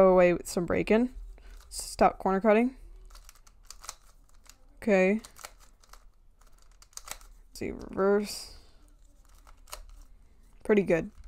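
Plastic puzzle pieces click and clack as a cube is twisted by hand.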